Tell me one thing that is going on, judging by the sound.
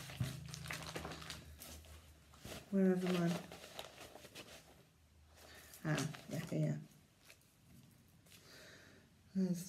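A middle-aged woman speaks calmly and close by.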